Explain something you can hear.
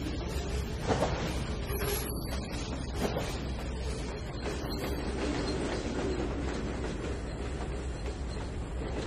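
Freight wagons rumble and clatter along the rails nearby.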